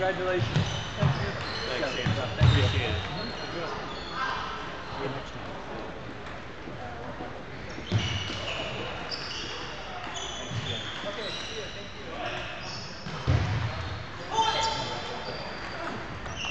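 Shoes squeak on a wooden floor in a large echoing hall.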